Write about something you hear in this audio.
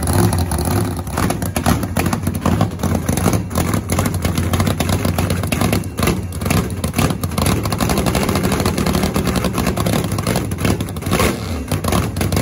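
A dragster engine revs in sharp, crackling bursts.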